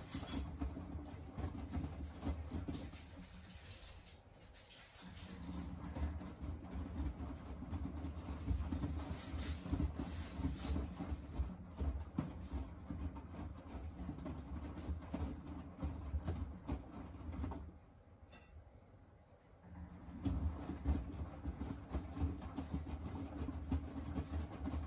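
Wet laundry sloshes and thumps inside a washing machine drum.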